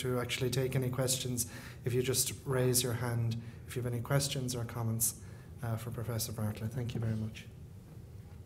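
A man speaks steadily into a microphone, close and clear.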